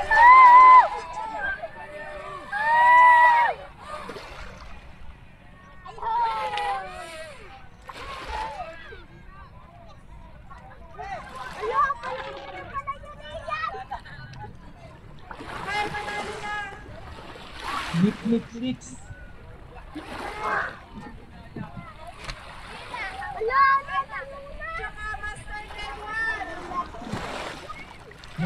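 A small model boat's motor whines as it speeds across the water.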